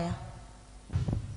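A woman speaks through a loudspeaker in a large echoing hall.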